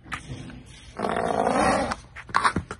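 A horse snorts loudly close by.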